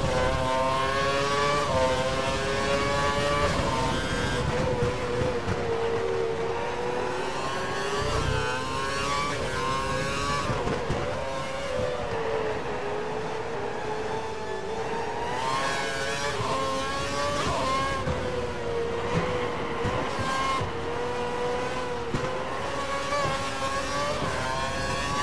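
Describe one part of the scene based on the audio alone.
A racing car engine screams at high revs, rising and dropping in pitch as it shifts gears and brakes.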